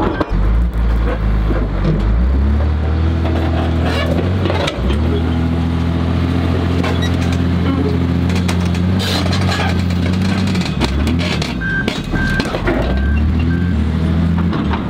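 A heavy diesel engine rumbles and drones steadily close by.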